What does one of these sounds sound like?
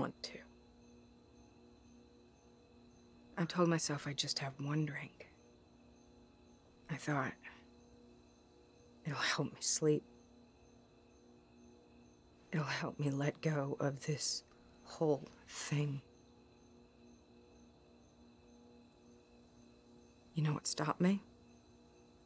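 A woman speaks quietly and tensely, close by, with long pauses.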